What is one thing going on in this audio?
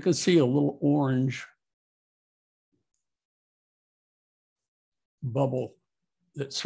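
An older man speaks calmly and close to a microphone, in short phrases.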